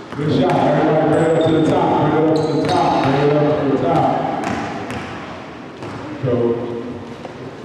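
A man shouts loudly in a large echoing gym.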